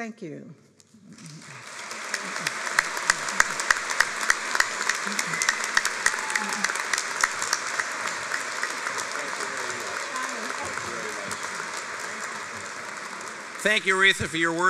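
A large crowd applauds and cheers in a large hall.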